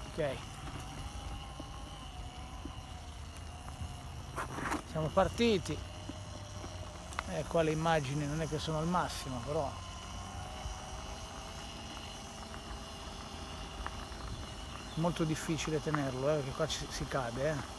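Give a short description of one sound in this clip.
Bicycle tyres rumble and rattle over cobblestones.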